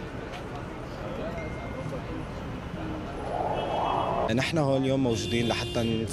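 A crowd murmurs and chatters in the background outdoors.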